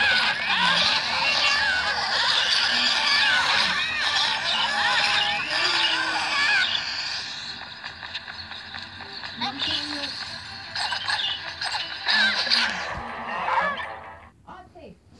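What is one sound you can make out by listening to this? Upbeat electronic game music plays loudly, then stops.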